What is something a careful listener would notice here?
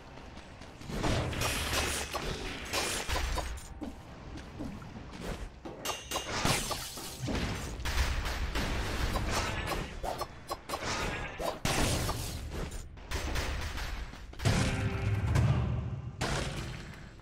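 Explosions thump low and loud.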